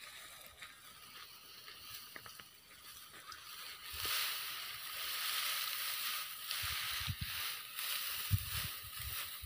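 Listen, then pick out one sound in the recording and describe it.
Dry straw rustles and crackles as a man stacks bundles.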